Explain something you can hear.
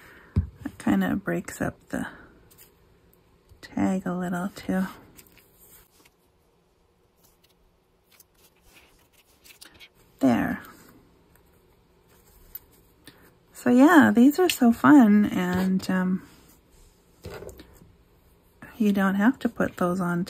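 Stiff paper rustles and taps softly on a tabletop.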